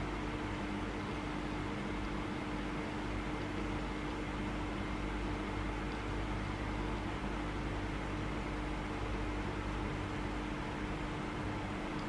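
A small electric pump hums steadily as a blood pressure cuff inflates.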